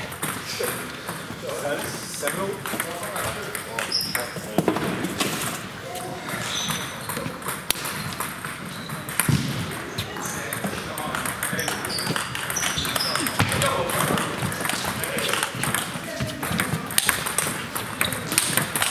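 Table tennis balls click on tables and bats in a large echoing hall.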